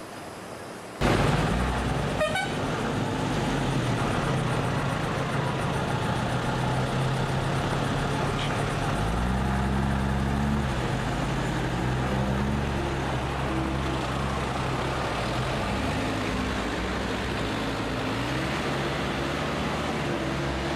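A vehicle engine hums steadily and rises and falls in pitch as it drives.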